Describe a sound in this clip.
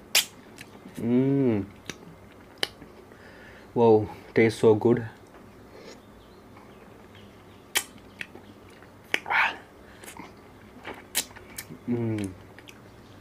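A man hums with pleasure while eating.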